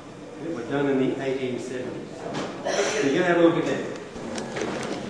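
An elderly man talks with animation in an echoing hall.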